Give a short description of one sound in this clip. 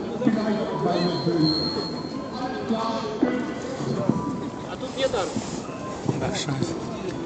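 A crowd of adults chatter and call out close by, outdoors.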